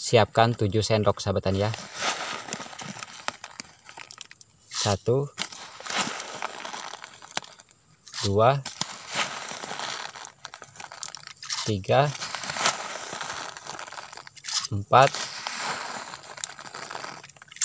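A metal spoon scoops and scrapes dry granules.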